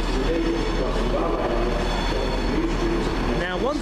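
A train rumbles in as it pulls up close by.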